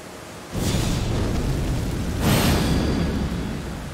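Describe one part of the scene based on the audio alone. A fire spell crackles and whooshes.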